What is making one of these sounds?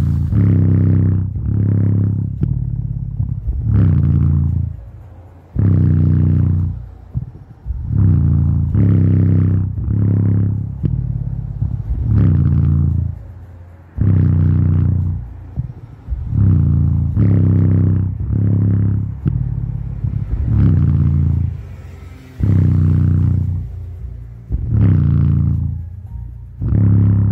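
A portable speaker plays music with deep, pulsing bass.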